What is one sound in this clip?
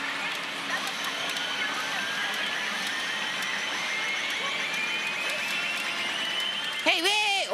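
A rising electronic tone builds steadily from a game machine.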